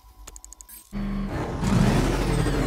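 A car engine roars loudly.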